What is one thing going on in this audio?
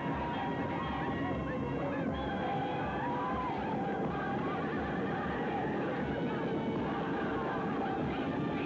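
Horse hooves pound the ground at a gallop.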